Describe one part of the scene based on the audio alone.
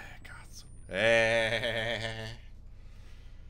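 A young man shouts out suddenly.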